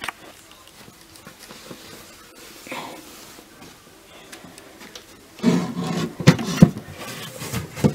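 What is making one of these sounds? A cloth curtain rustles as it is pushed aside.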